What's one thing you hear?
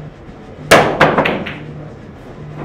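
Pool balls knock against each other.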